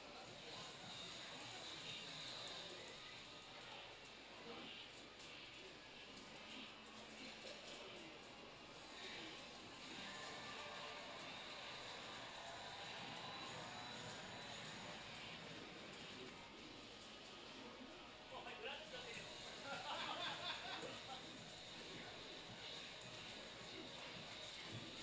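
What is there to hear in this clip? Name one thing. Arcade game music plays with electronic effects.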